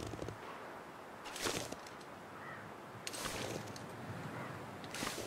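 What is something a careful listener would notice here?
Wind gusts and hisses outdoors.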